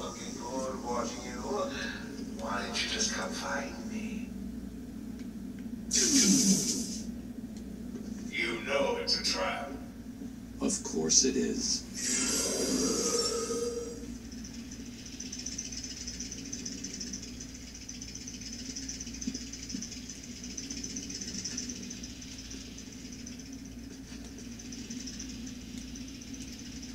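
Game sound effects and music play from a television loudspeaker.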